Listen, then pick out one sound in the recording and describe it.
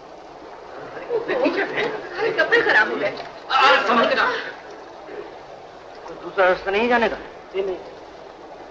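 A man speaks urgently to a group nearby.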